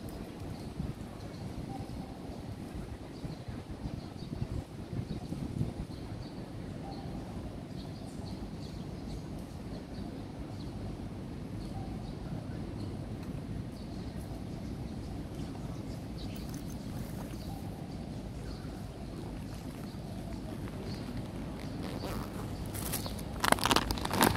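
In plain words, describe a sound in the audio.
Wind blows outdoors, rumbling low and steady.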